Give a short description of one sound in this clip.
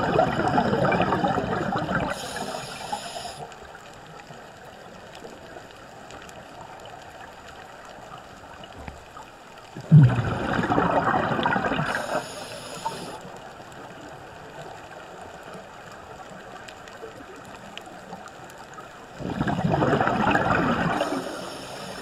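Scuba air bubbles gurgle and rumble loudly underwater in bursts.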